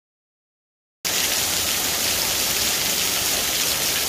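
Heavy hail clatters onto gravel.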